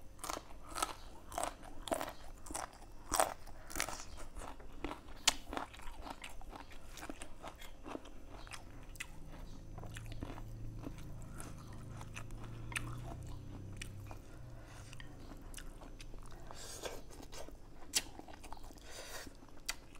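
A young man chews and smacks his lips loudly, close by.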